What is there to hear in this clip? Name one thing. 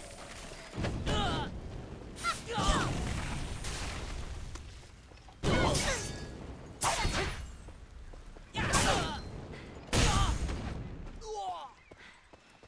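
Fiery magic blasts burst again and again.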